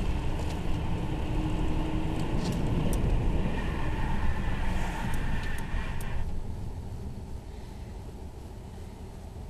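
A car rumbles along the road and grows quieter as it slows to a stop.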